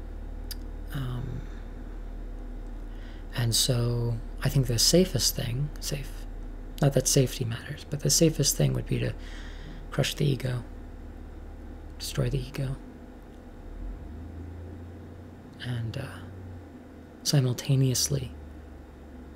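A young woman speaks calmly in short bursts close to a microphone.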